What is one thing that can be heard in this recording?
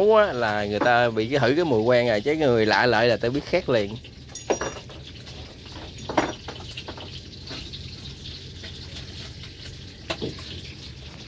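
Chopsticks clink and scrape against a metal bowl.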